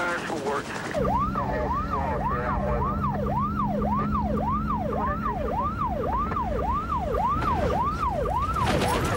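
A car engine roars.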